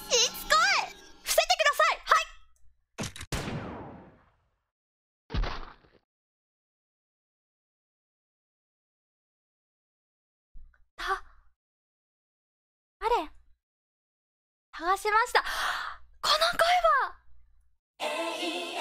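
A young woman speaks animatedly into a microphone, close up.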